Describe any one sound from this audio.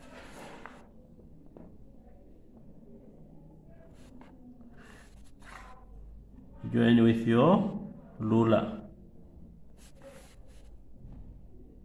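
A plastic ruler slides and taps on paper.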